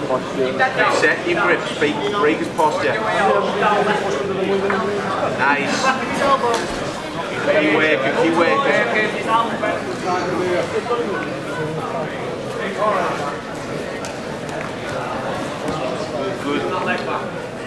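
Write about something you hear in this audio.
Several men shout and talk loudly nearby in a large echoing hall.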